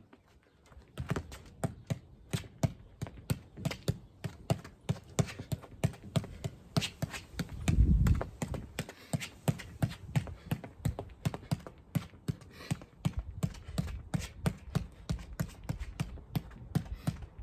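A football thuds repeatedly against a foot as it is kept up in the air.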